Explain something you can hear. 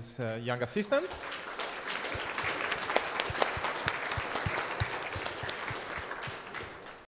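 Hands clap in applause.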